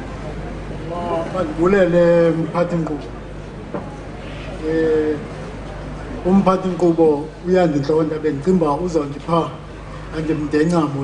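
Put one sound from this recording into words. An elderly man speaks loudly into a microphone, heard through loudspeakers.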